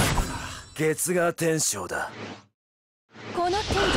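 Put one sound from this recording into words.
Swords clash and magic effects burst in a game battle.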